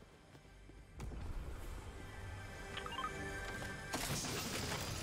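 A treasure chest creaks open with a shimmering chime.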